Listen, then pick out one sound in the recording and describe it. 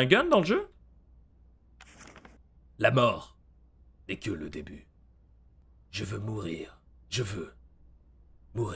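A man speaks close to a microphone in short bursts, with pauses between.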